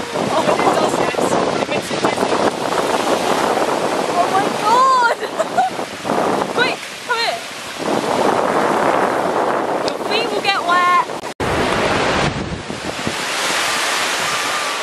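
Waves crash and wash over the shore.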